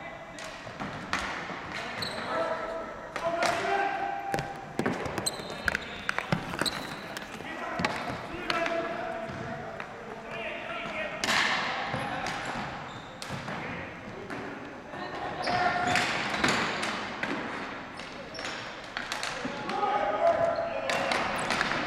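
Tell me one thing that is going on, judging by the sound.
Hockey sticks clack against a ball on a hard floor in a large echoing gym.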